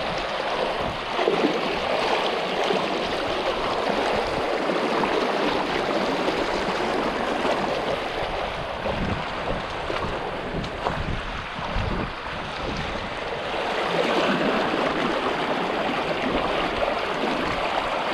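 Water splashes as feet wade through a stream.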